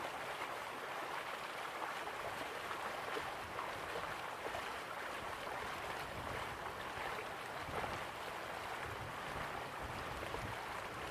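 A waterfall rushes and roars steadily nearby.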